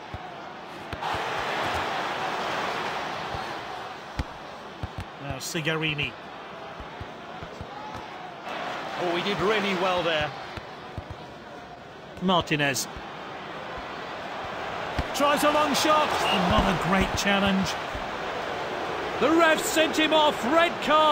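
A stadium crowd roars and cheers in the distance.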